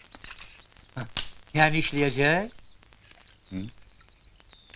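A man speaks briefly with animation, close by.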